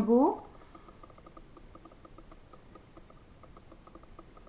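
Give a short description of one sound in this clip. A makeup brush brushes softly over skin.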